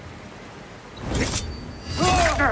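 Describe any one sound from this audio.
A heavy blow lands with a sharp thud.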